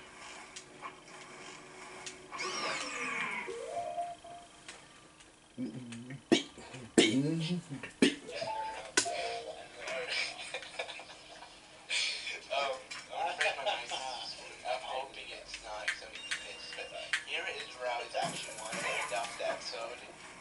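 Electronic game sound effects chime and blip from a television speaker.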